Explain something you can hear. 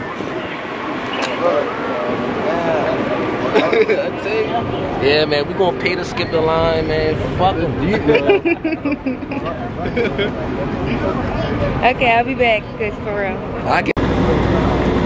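A young woman talks close by in a cheerful, chatty way.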